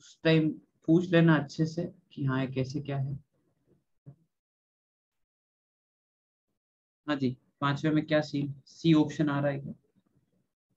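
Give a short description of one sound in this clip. A man speaks calmly into a microphone, explaining in pauses.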